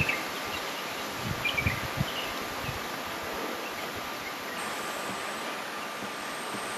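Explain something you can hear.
A small animal's paws patter softly on sand.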